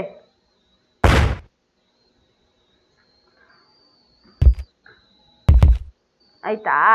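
A body lands with heavy thuds.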